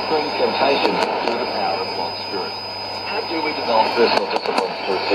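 Hiss and static crackle from a shortwave radio.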